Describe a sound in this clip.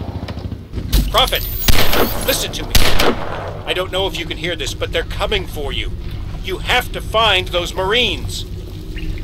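A man speaks close to a microphone.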